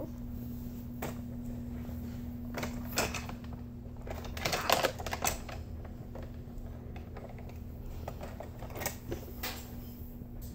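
Plastic toys rattle and clack.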